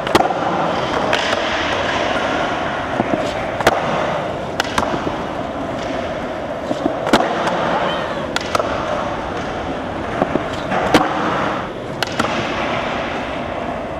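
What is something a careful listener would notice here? Skateboard wheels roll and rumble on a smooth floor.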